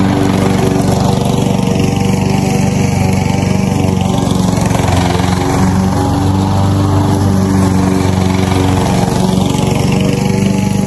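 A small petrol engine runs loudly and steadily close by.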